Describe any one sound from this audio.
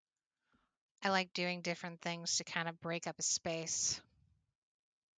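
A woman speaks animatedly and close to a microphone.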